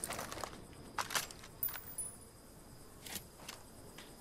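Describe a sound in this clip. Muffled gunshots crack in short bursts.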